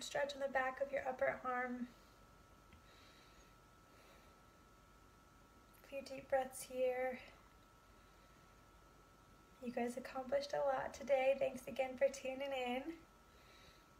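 A young woman speaks calmly and close by, in short instructive phrases.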